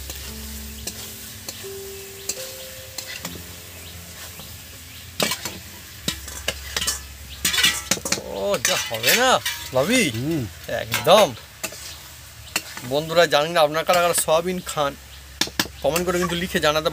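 A metal spatula scrapes and stirs in a wok.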